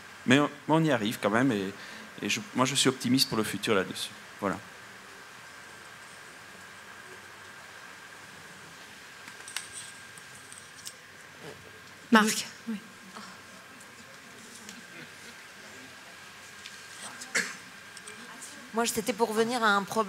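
A man speaks over a microphone in a large hall, pausing between phrases.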